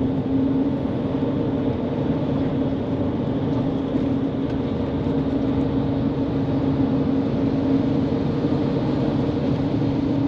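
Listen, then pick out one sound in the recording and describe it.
A truck passes close alongside.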